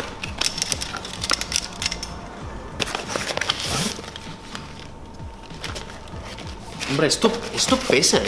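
A cardboard box rustles and scrapes as it is opened.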